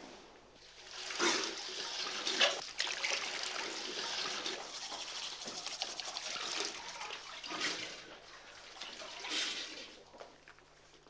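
Water runs and splashes from a tap.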